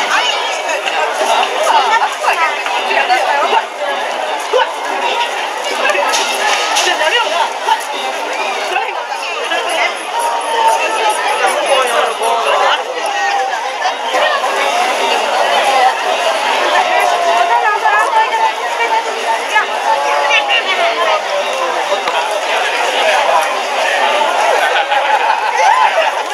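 A large crowd of men and women chatters and calls out loudly outdoors.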